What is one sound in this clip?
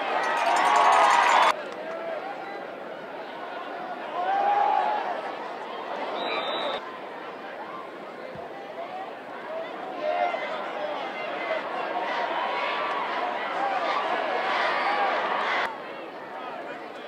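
A crowd cheers and shouts in an open stadium.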